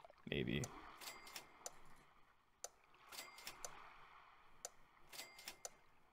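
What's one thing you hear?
Short chiming game sound effects play, each with quick clicks.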